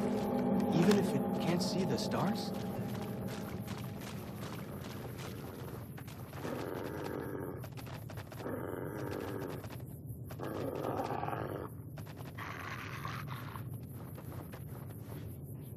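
Footsteps crunch quickly on dirt and gravel.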